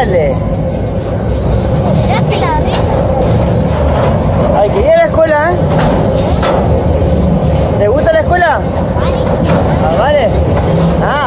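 Train wheels squeal against the rails now and then.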